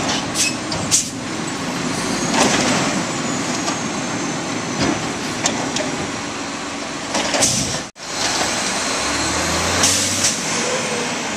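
A metal bin clanks and bangs against the truck.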